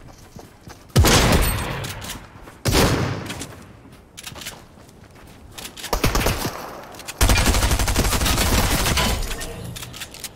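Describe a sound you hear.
Gunfire from a video game rings out in bursts.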